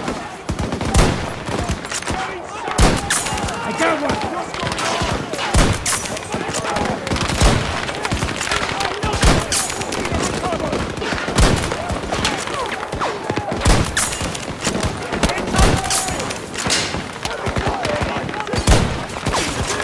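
A rifle fires loud single shots every couple of seconds.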